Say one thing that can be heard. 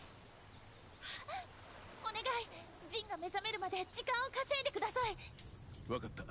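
A young woman speaks urgently.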